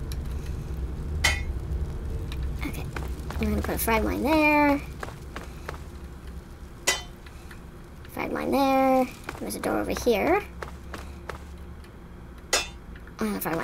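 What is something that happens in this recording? A small metal object clanks down onto a hard floor.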